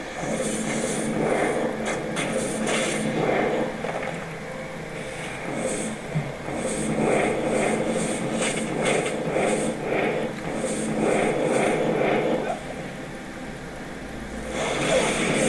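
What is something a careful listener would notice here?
Fiery spells burst and crackle again and again.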